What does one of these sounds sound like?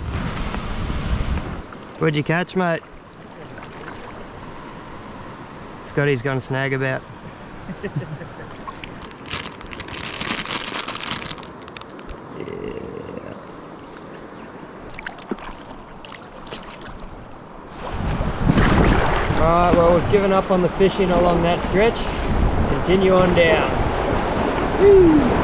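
A paddle splashes through water.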